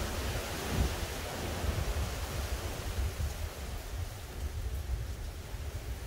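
Wind blows outdoors, buffeting in gusts.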